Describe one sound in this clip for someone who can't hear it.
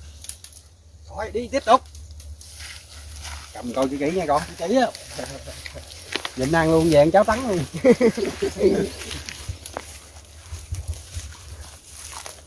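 Footsteps crunch on dry leaves.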